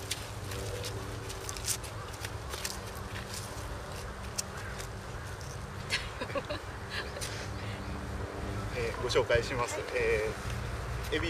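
A hoe scrapes and crunches in the soil.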